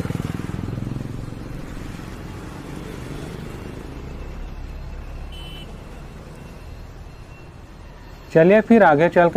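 Motorcycle engines hum and pass by on a street.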